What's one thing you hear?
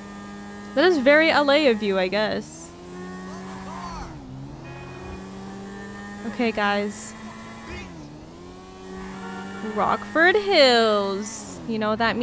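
A motorcycle engine hums steadily and revs.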